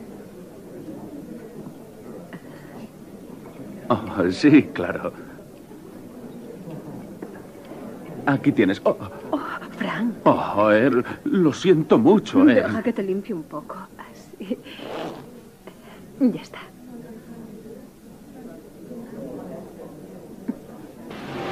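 Party guests chatter quietly in the background.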